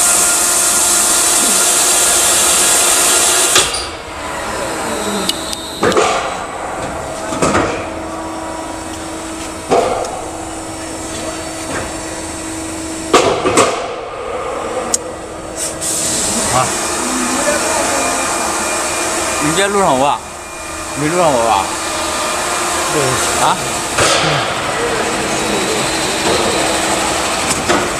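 Factory machinery hums steadily in a large echoing hall.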